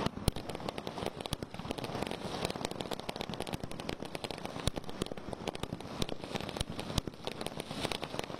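Fireworks burst with loud, rapid bangs.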